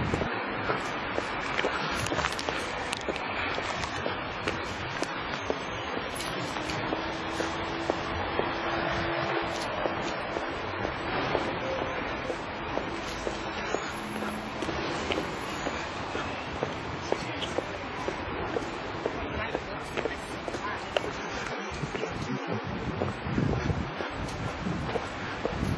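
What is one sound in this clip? A car drives along a road with a steady rumble of tyres.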